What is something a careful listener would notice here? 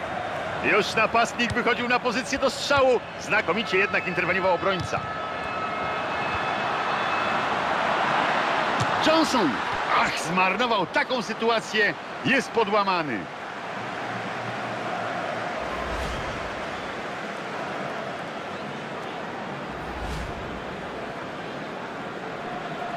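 A stadium crowd roars steadily, swelling loudly at times.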